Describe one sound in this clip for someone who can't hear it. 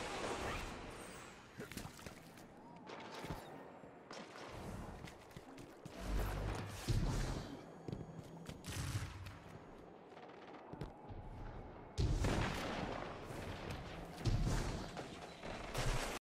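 Rapid gunshots fire in a game.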